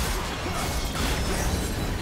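Game explosions boom.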